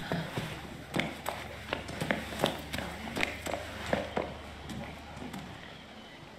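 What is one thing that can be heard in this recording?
Footsteps clank on a hard metal floor.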